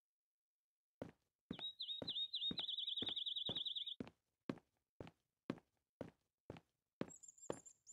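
Footsteps walk on pavement at a steady pace.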